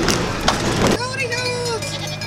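A goat bleats.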